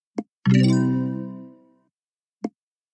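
A bright game chime rings out and fades away.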